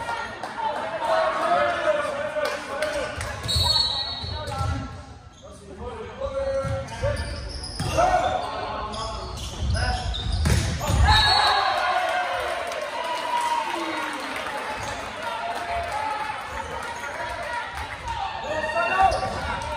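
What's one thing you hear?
Young players shout and call to each other in a large echoing gym.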